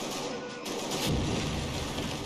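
Debris bursts apart with a heavy blast.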